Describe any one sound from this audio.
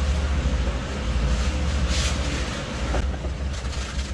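A stiff brush scrubs a wet plastic tarp.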